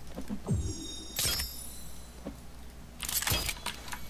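A game inventory closes with a soft whooshing sound effect.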